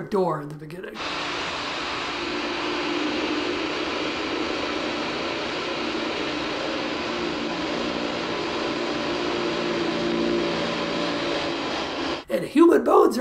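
A drill bores steadily into a wall.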